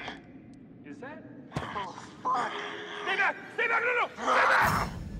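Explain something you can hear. A young man shouts in panic close by.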